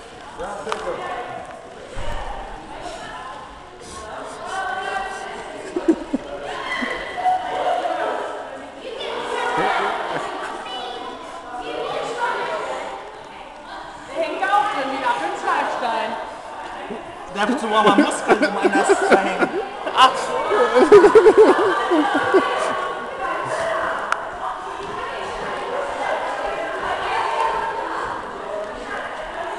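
Large metal hoops roll and rumble across a wooden floor.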